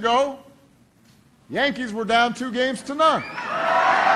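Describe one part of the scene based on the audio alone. A man speaks calmly into a microphone to a crowd.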